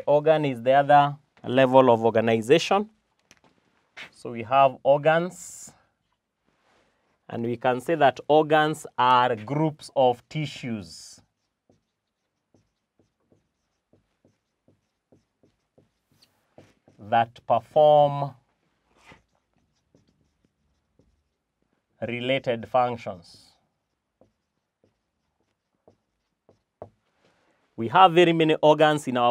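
A man speaks calmly and clearly into a microphone, in bursts with pauses.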